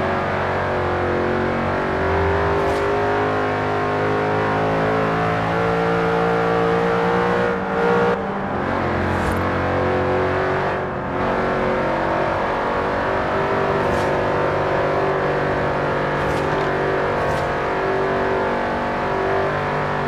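A supercharged V8 sports car engine roars as the car accelerates at speed, heard from inside the cabin.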